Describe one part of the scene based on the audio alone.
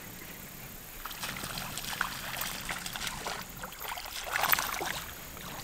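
Water splashes and sprays onto a shallow stream.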